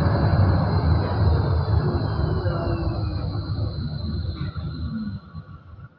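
A tram's motor whines and falls in pitch as it slows down.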